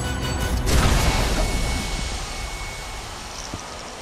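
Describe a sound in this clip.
Smoke jets hiss loudly and slowly fade.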